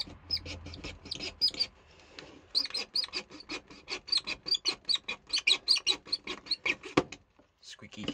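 A file rasps back and forth across a plastic part in quick strokes.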